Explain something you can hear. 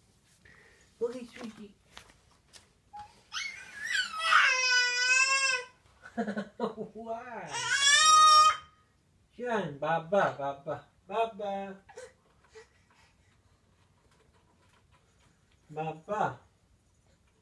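A baby babbles and coos, close by.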